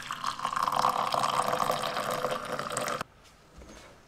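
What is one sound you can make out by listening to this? Liquid pours and splashes into a cup.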